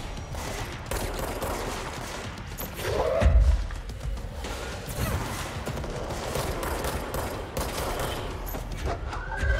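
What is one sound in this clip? Gunfire crackles in bursts.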